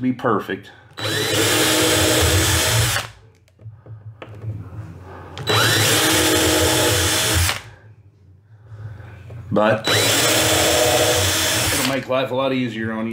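A power drill whirs loudly in short bursts.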